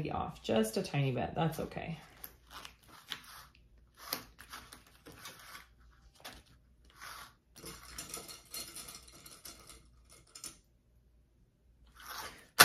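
Fabric rubs and slides across a table.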